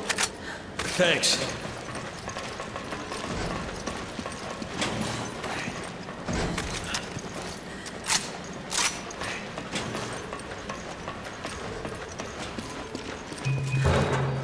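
Boots clomp on metal stairs and grated floors.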